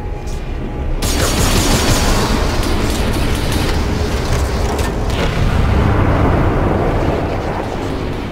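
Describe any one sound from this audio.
Steam hisses loudly and steadily.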